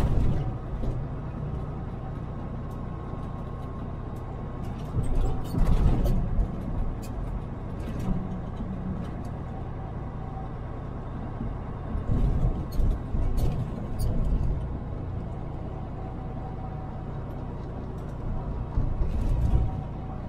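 A car's engine hums steadily as it drives along.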